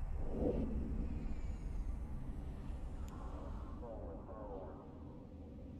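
A deep spaceship engine rumbles steadily and slowly fades.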